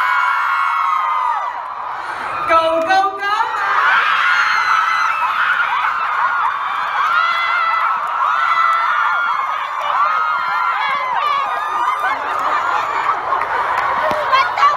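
A crowd of young women screams and cheers excitedly nearby.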